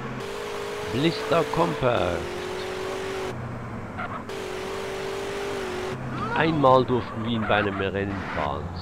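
Car tyres screech on the road.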